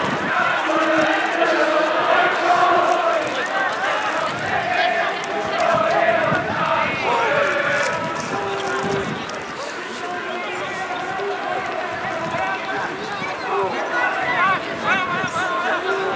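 A large crowd murmurs and cheers in an open stadium.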